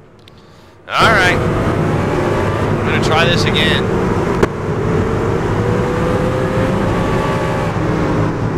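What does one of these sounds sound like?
Race car engines roar as cars speed around a track.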